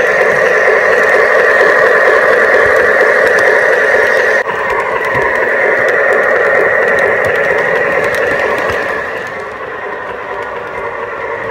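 A model train rolls along its track with a steady whirring hum.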